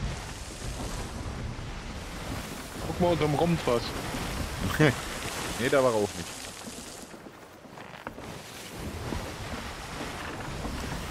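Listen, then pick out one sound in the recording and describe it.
Waves wash and roll on open sea.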